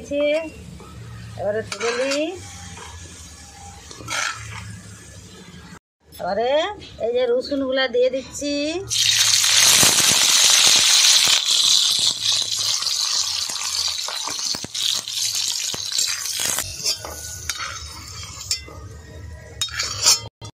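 A metal spatula scrapes against an iron pan.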